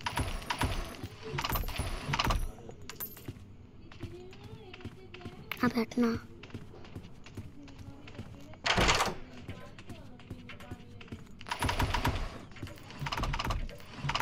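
Wooden drawers slide open.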